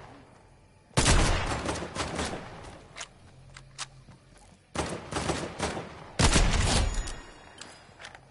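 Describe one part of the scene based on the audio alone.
A rifle fires loud, sharp shots that echo away.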